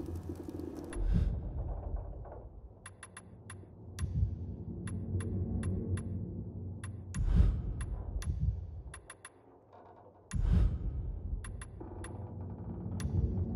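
Short menu clicks tick again and again.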